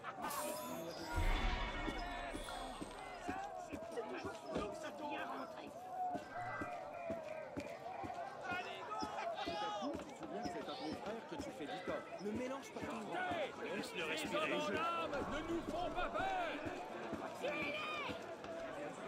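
A crowd of men and women chatter and call out all around.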